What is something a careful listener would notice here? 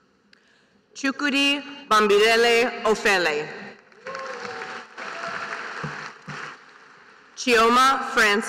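A man reads out names through a loudspeaker in a large echoing hall.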